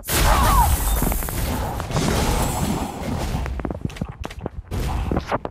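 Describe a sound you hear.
Sharp hits and clanks of a game battle sound repeatedly.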